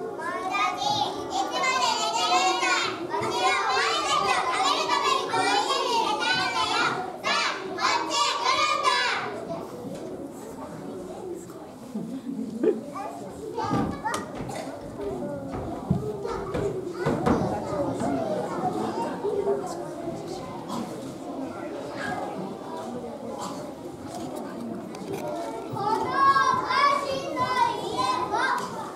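Children in an audience chatter nearby.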